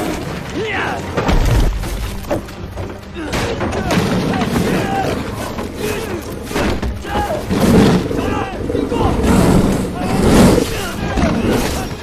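A large cat growls and snarls loudly.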